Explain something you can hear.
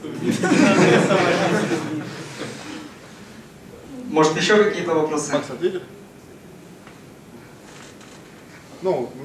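A young man speaks into a microphone over loudspeakers in an echoing hall, pausing between phrases.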